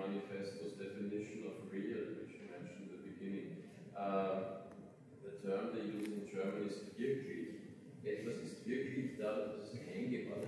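A middle-aged man speaks calmly and steadily into a microphone in a large room.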